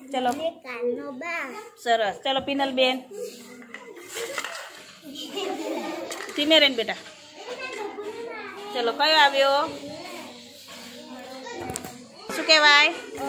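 A young child talks with animation close by.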